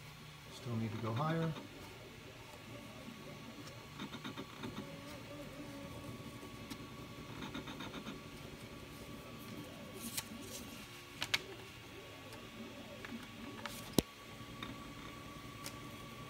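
A printer's motors hum and whir steadily.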